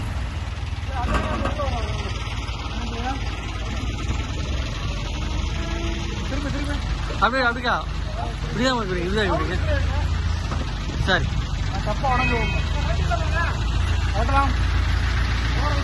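Men call out loudly to each other outdoors.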